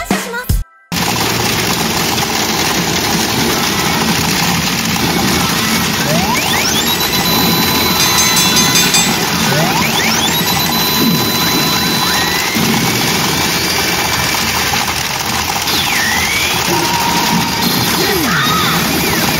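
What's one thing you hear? A pachinko machine blares loud electronic music and rising sound effects.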